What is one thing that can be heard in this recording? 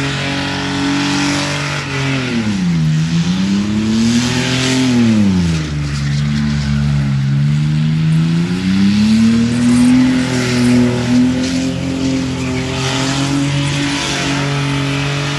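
A car engine roars loudly, revving up and down.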